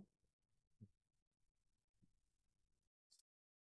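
A metal lid clanks as it is lifted off a pan.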